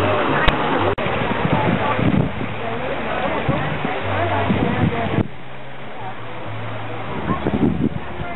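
People chatter in a lively crowd nearby.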